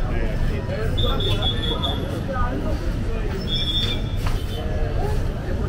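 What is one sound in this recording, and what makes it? Men talk and call out nearby on a busy street.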